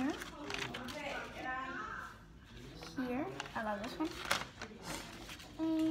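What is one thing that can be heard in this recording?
Paper rustles and flaps.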